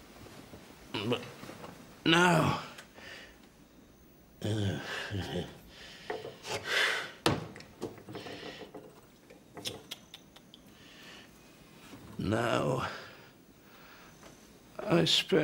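An elderly man speaks in short, dramatic bursts, close by, with pauses between.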